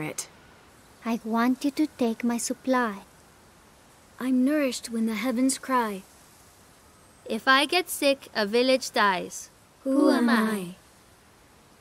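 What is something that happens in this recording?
A boy speaks earnestly up close.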